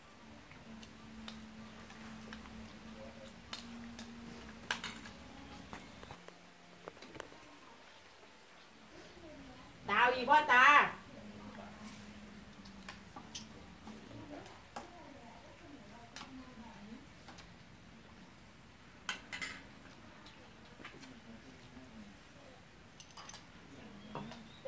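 Chopsticks and spoons clink against bowls.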